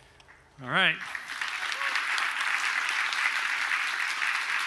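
An audience applauds and cheers in a large hall.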